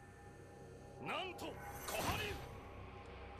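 A man shouts fiercely.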